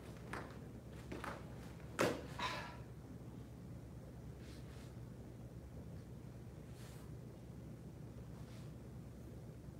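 Feet thump and shuffle on a padded floor.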